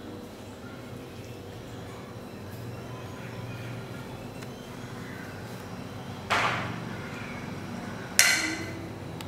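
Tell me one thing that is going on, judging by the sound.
Small monkeys squeak and chirp softly.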